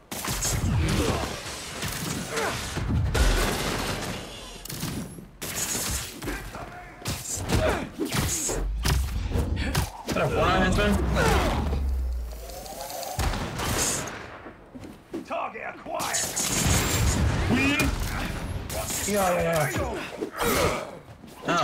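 Punches and kicks thud in a fast game fight.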